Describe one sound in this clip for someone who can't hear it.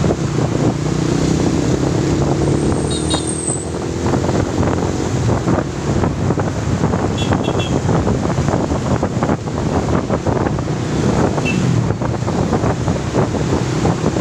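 Wind rushes past loudly and roughly.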